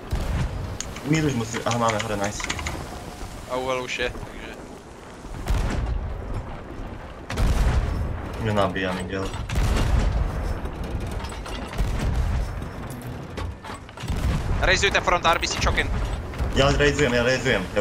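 Waves crash and splash against a ship's hull.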